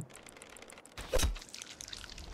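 A sword strikes with a sharp hit.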